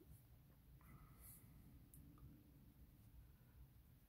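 A colored pencil scratches softly on paper.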